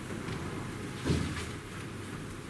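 A laptop is set down on a desk with a soft knock.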